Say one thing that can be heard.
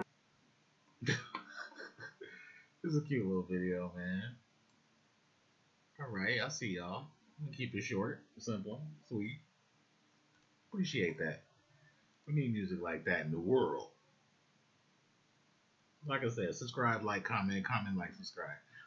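A man talks casually over an online call.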